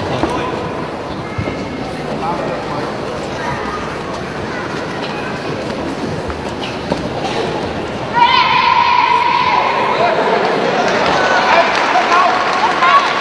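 A large crowd of spectators murmurs in an echoing indoor arena.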